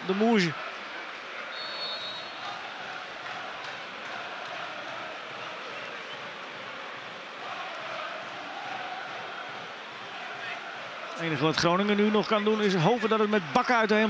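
A stadium crowd murmurs steadily in the distance.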